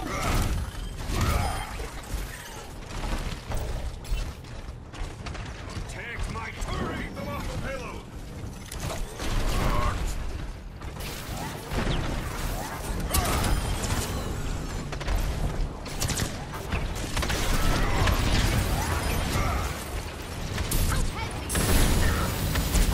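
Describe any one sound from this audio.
Heavy weapon fire rattles rapidly in short bursts.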